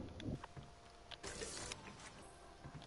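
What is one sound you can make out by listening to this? Water splashes as something wades through it.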